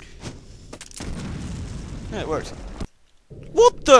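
A magic weapon fires with a rushing blast.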